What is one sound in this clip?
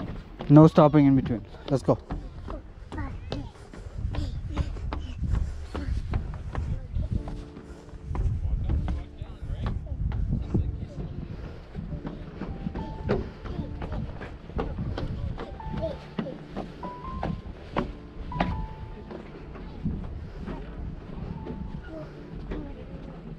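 Footsteps thump on wooden boardwalk and stairs.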